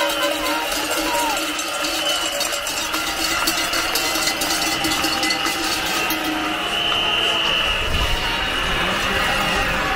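A large outdoor crowd murmurs and chatters.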